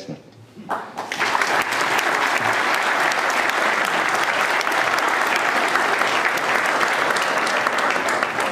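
A large audience applauds and murmurs loudly.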